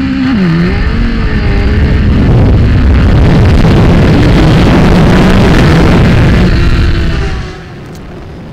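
Wind roars loudly past the rider at high speed.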